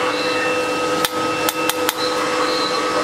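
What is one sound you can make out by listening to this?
Metal tools clink together a few times.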